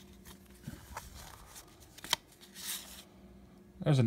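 Stiff cards slide and tap against each other in someone's hands.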